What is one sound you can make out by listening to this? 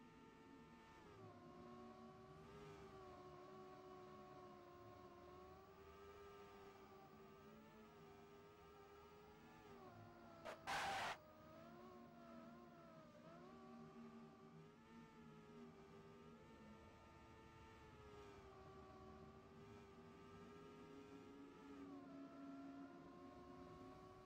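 A race car engine whines steadily, rising and falling in pitch as the car speeds up and slows down.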